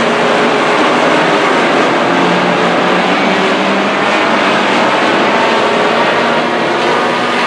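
Many race car engines roar loudly as the cars speed around the track.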